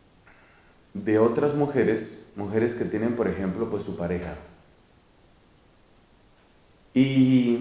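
A man speaks calmly and thoughtfully, close by.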